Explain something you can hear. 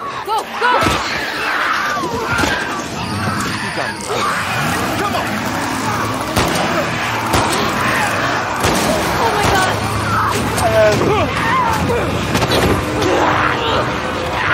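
A young woman shouts urgently.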